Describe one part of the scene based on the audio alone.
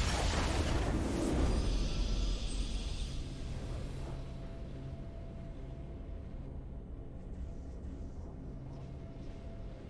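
A short triumphant fanfare plays, then soft steady music hums.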